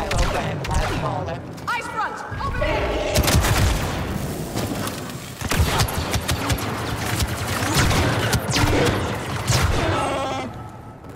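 Blaster shots fire rapidly in bursts.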